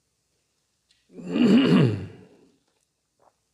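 An elderly man speaks briefly through a microphone.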